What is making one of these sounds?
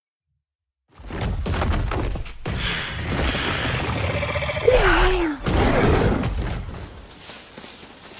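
A large creature roars loudly and deeply.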